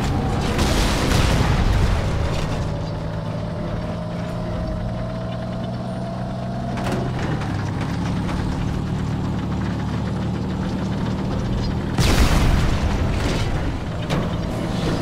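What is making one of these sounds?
An engine hums steadily.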